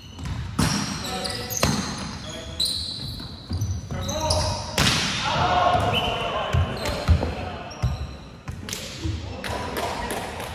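A volleyball is struck with sharp thuds in a large echoing hall.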